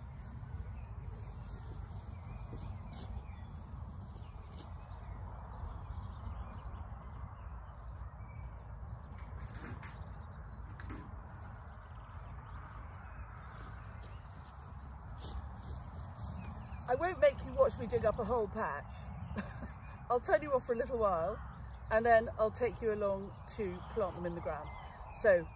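Wind rumbles across outdoors.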